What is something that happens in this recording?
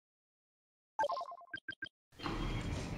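A game interface plays a quick run of bright electronic chimes.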